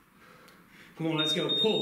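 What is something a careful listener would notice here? An electronic timer beeps loudly.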